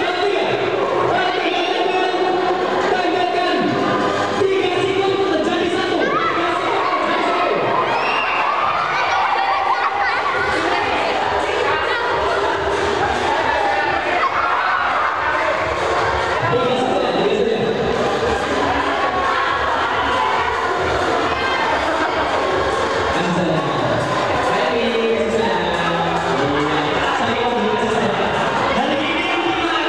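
Children chatter, shout and laugh in an echoing hall.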